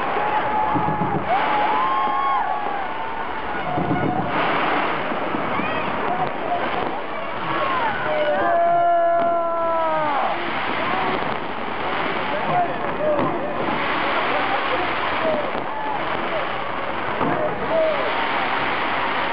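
Fireworks crackle and pop loudly in bursts.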